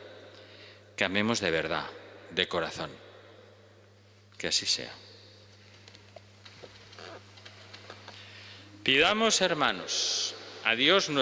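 An elderly man speaks calmly and slowly through a microphone in a large echoing hall.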